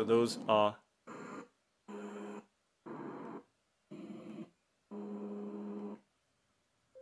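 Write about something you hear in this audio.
A small speaker plays short bursts of hissing sound, one after another.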